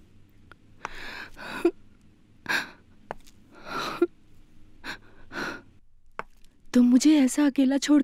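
A young woman speaks in a soft, breathy voice close by.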